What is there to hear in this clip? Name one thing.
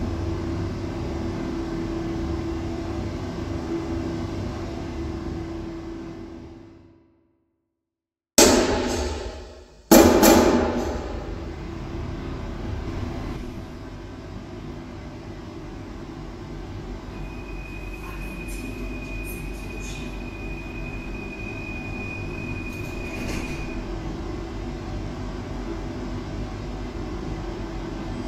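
A stationary train hums steadily.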